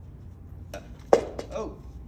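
A cane clatters onto the floor.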